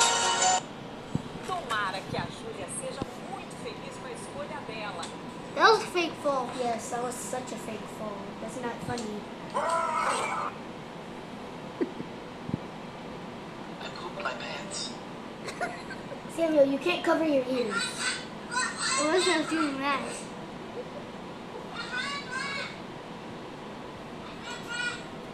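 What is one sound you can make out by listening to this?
A woman speaks with animation through a small laptop speaker.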